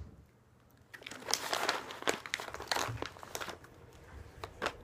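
A plastic snack bag crinkles and rustles close by.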